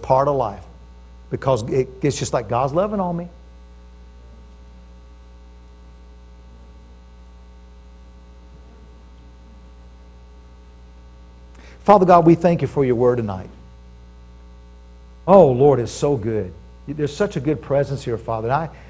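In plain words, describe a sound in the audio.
A middle-aged man speaks calmly through a microphone, with long pauses.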